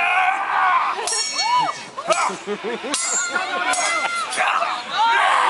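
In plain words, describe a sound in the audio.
Steel swords clash and ring outdoors.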